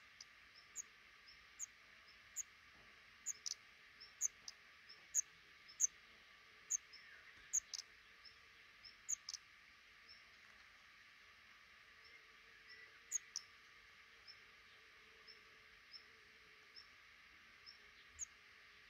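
Baby birds chirp in quick, high peeps close by.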